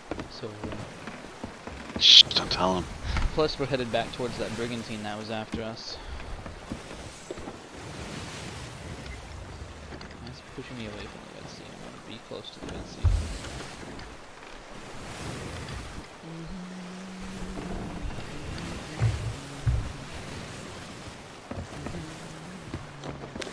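Rough sea waves crash and slosh against a wooden ship's hull.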